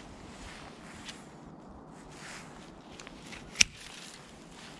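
Pruning shears snip through thin branches with sharp clicks.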